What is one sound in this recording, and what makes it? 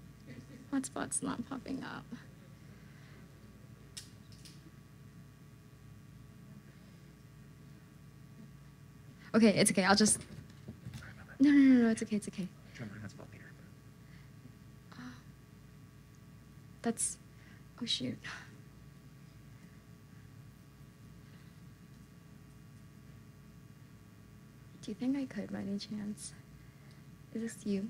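A young woman speaks into a microphone, with long pauses.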